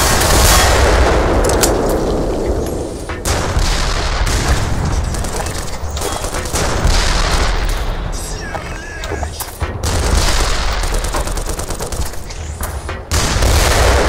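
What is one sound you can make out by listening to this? Automatic gunfire rattles in bursts.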